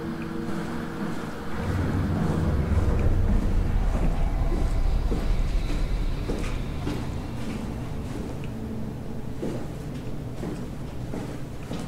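A deep mechanical drone hums and rumbles.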